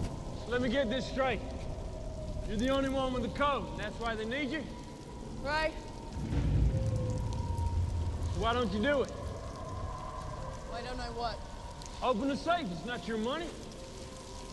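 A man calls out loudly in a hollow, echoing space.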